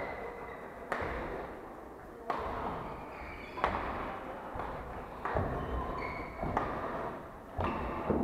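Shuttlecocks are hit with sharp smacks of badminton rackets in a large echoing hall.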